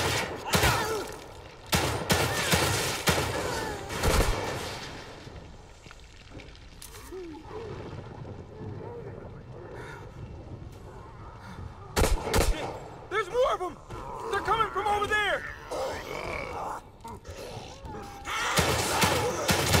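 Gunshots ring out in loud, sharp bursts.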